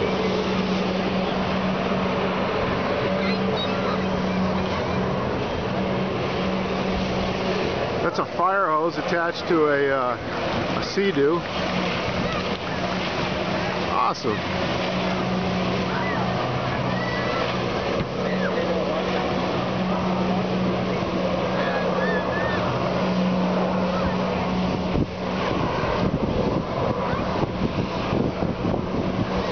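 A personal watercraft engine drones steadily across the water.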